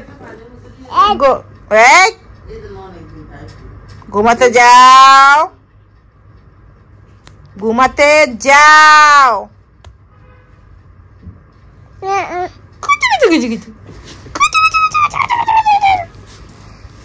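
A woman speaks nearby in a high, playful singsong voice.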